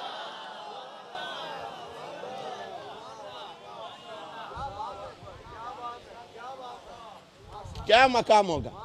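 A man preaches passionately into a microphone, his voice rising to a loud chant.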